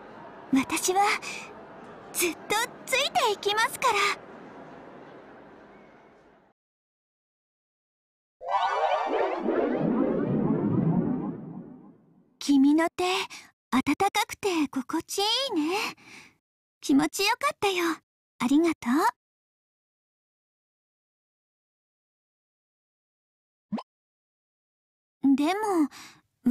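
A young woman speaks softly and cheerfully, heard close.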